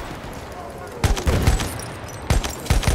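A heavy gun fires with loud booming blasts.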